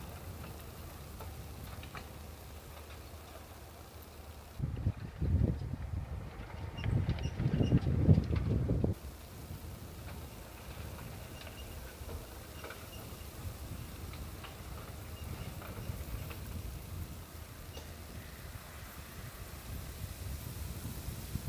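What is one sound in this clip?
A rally car's engine drones in the distance.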